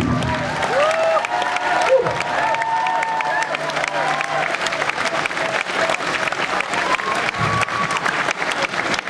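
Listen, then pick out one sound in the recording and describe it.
An audience cheers and whistles.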